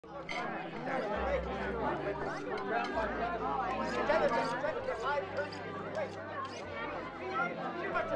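Several men and women talk and chatter over one another nearby.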